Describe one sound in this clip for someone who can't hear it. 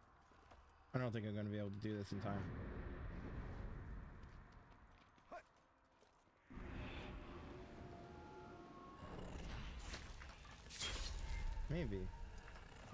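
A young man talks into a close microphone with animation.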